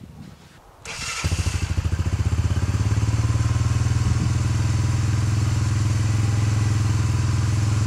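An all-terrain vehicle's engine idles close by with a steady, throbbing rumble.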